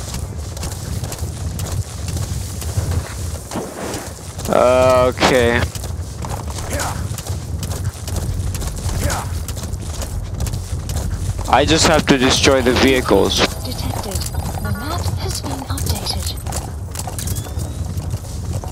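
A horse gallops with steady thudding hoofbeats.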